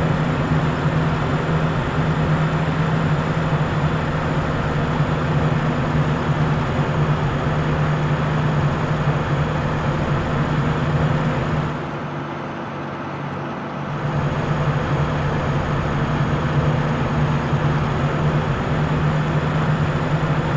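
A bus engine hums steadily as it drives along a road.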